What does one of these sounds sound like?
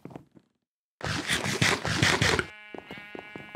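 Someone chews and crunches food noisily.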